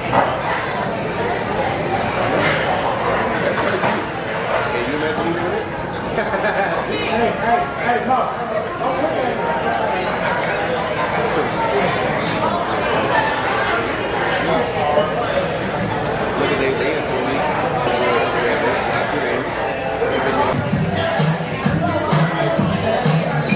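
A young woman talks close by in a casual, chatty way.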